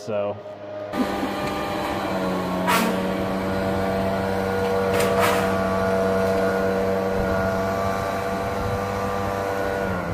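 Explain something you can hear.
A two-stroke backpack leaf blower runs outdoors.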